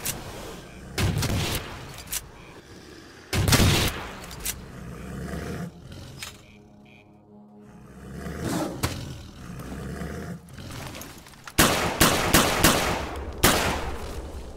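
Gunshots crack loudly in short bursts.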